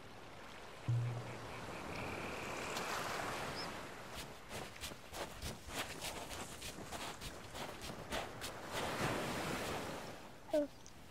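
Waves wash softly onto a shore.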